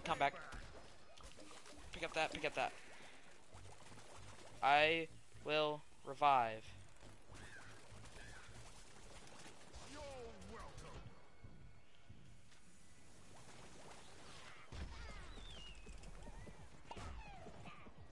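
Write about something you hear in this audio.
Video game blasts and zaps go off in a fight.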